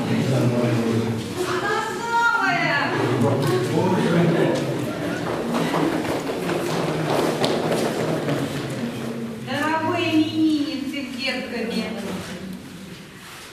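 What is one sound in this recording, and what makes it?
Several women talk and exclaim in a large hall.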